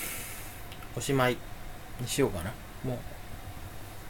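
A young man speaks briefly, close by.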